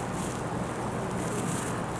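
Liquid trickles softly into a metal cup.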